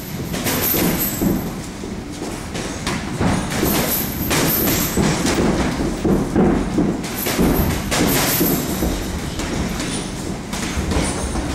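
Boxing gloves thump against punch mitts in quick bursts.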